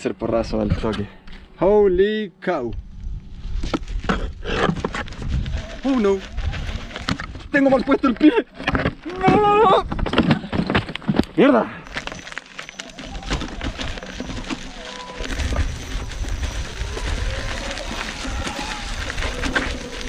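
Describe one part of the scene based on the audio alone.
Tyres crunch and rattle over loose rocks.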